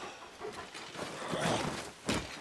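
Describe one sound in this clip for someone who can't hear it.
A sword swishes through the air and strikes.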